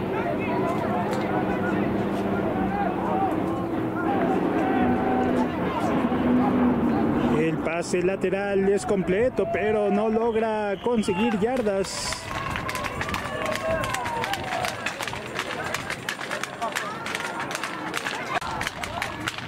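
A crowd of players and spectators cheers and shouts outdoors.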